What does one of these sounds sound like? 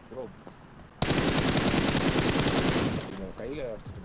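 A rifle fires a rapid burst of shots up close.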